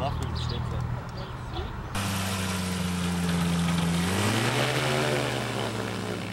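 A small propeller engine drones steadily, then revs higher.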